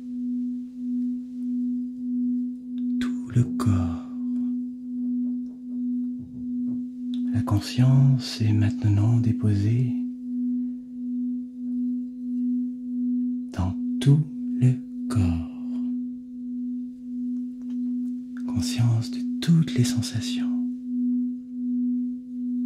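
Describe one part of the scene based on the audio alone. A crystal singing bowl rings with a steady, gently pulsing hum as a mallet circles its rim.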